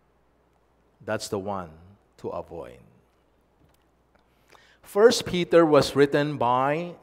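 An older man speaks calmly and clearly into a microphone.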